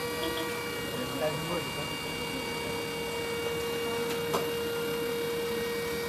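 An electric motor whirs steadily as a hearse's lid lowers.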